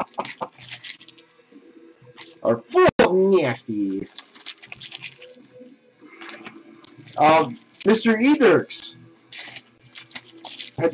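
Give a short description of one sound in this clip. Foil card wrappers crinkle and rustle as hands tear them open.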